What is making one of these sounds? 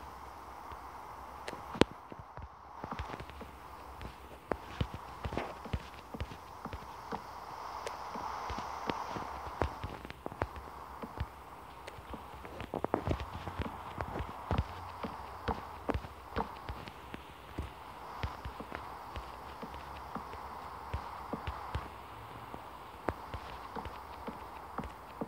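A young boy talks quietly close to a microphone.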